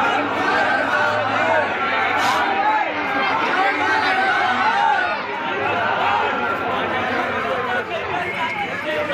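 A crowd of men chant and shout together outdoors.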